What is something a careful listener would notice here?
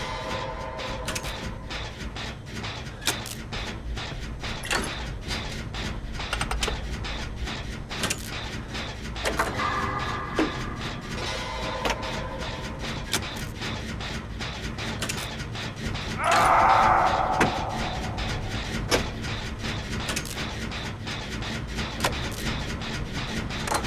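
A machine engine hums low and steadily.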